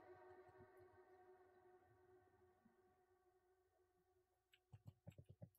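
Music plays with sustained tones that fade.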